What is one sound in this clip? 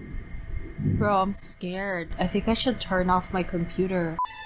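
A young woman speaks into a nearby microphone with excitement.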